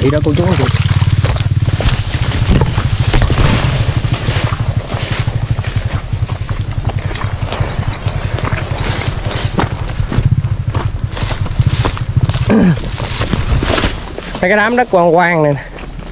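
Footsteps rustle through tall grass and leaves.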